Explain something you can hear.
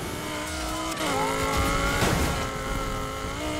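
A police siren wails close by.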